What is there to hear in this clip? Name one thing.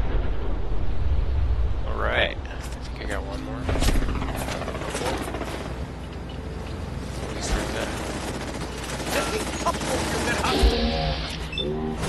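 A robot whirs and hums mechanically.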